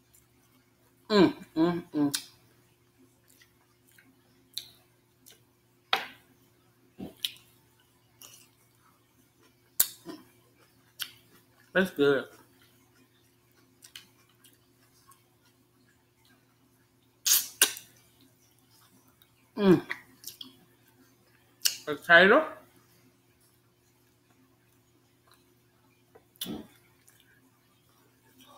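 A woman chews food with wet, smacking sounds close to a microphone.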